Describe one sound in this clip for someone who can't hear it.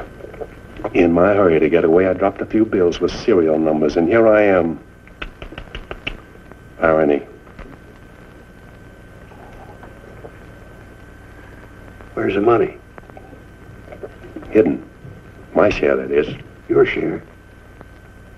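A middle-aged man speaks firmly and with animation, close by.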